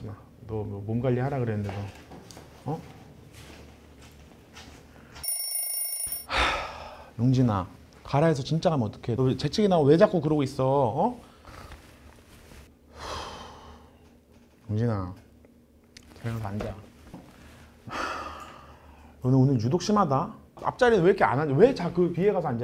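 A man speaks with animation close by, in a slightly echoing room.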